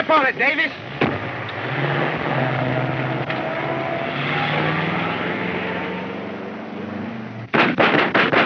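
A vintage touring car's engine revs as the car pulls away.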